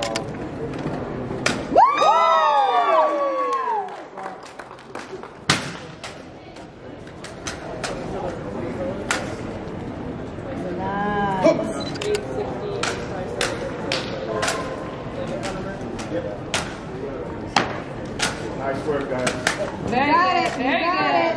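Wooden drill rifles clack sharply as they are spun, tossed and caught.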